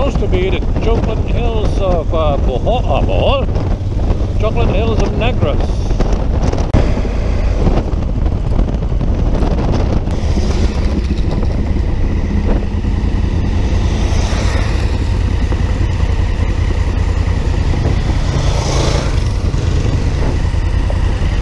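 Wind roars and buffets loudly against a microphone.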